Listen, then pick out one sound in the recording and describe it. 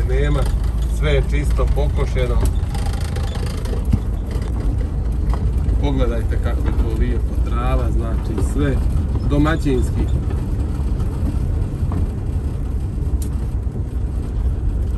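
A vehicle rolls slowly over grass with a low, steady rumble.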